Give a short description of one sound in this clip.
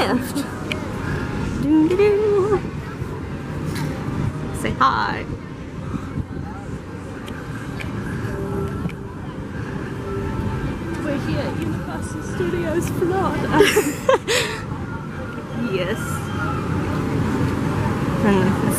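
A young woman talks cheerfully close to the microphone.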